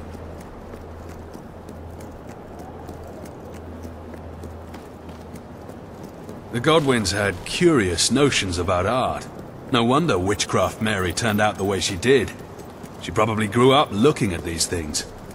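Footsteps run over cobblestones.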